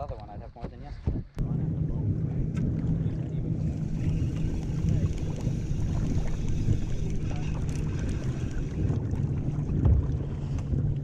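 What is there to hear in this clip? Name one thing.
Water laps and splashes against a boat.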